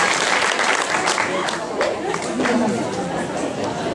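Young girls shout and chatter nearby.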